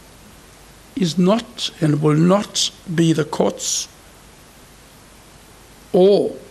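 An elderly man speaks slowly and calmly into a microphone.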